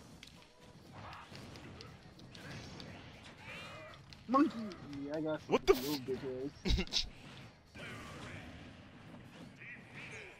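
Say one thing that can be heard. Punches and kicks land with sharp, cracking impacts.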